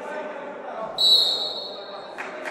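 A referee's whistle blows a short, shrill blast.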